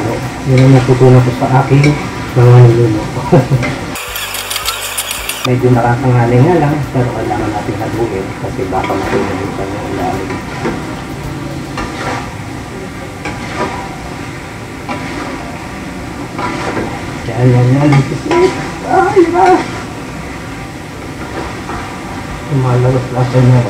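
Food sizzles in a hot wok.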